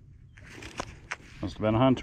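A gloved finger rubs dirt off a coin.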